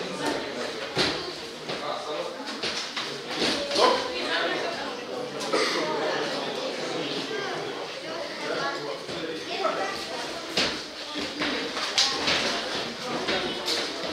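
Shoes squeak and shuffle on a ring canvas.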